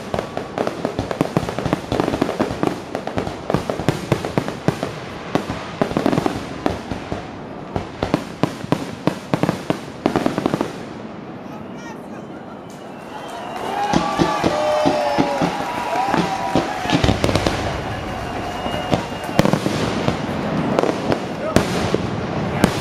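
Fireworks crackle and pop in rapid bursts.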